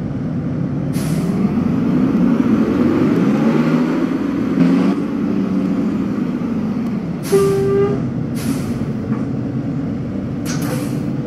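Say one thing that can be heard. A bus engine hums and rises in pitch as the bus pulls away.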